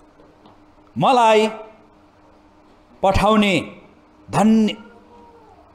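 A man speaks forcefully into a microphone, heard through loudspeakers in an echoing room, in short loud bursts.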